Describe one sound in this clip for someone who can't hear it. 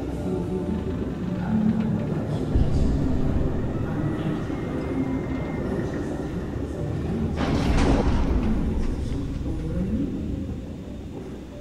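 Footsteps walk slowly on a hard floor.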